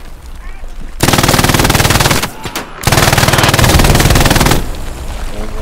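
A rifle fires loud rapid bursts in a room.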